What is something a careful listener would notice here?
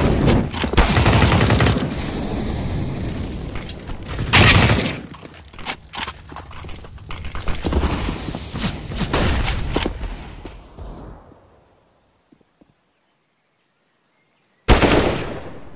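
Rifle shots crack loudly in quick bursts.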